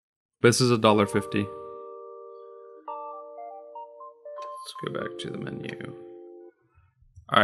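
A short electronic game jingle plays with steady tones.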